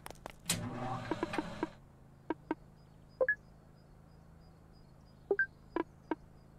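Menu clicks and beeps sound now and then.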